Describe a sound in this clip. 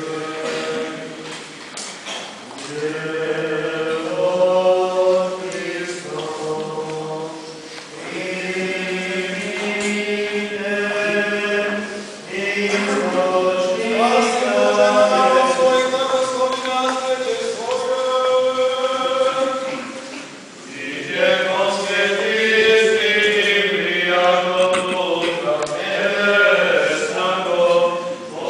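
A man chants a slow liturgical melody in a large echoing hall.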